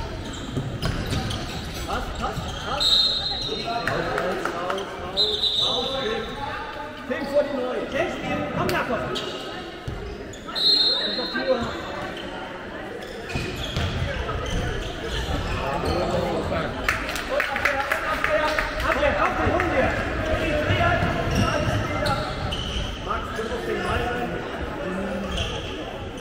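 Young male players shout to each other across a large echoing hall.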